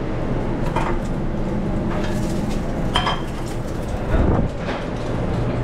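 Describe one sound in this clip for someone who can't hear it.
A pan clanks on a stove.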